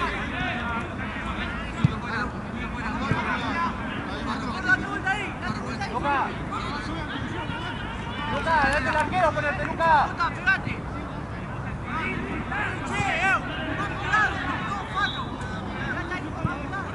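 Several young men call out and talk across an open outdoor pitch.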